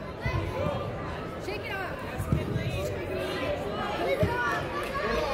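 A soccer ball thuds when kicked.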